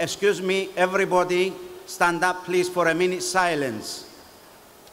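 A man chants loudly through a loudspeaker in a large echoing hall.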